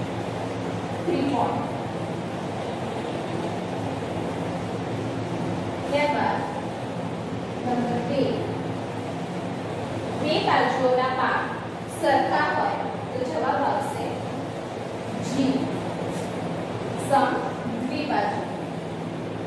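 A woman speaks clearly in an echoing room, in short phrases.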